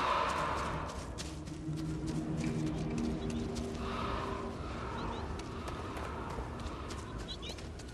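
Footsteps crunch and rustle through dry grass and dirt.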